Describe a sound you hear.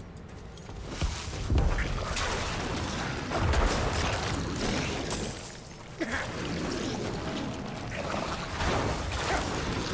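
Fighting clashes and bursts loudly in a busy fight.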